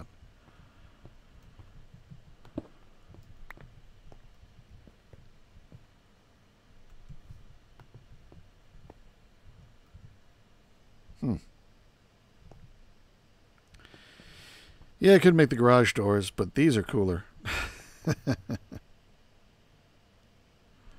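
Blocks are placed with soft, short clicks.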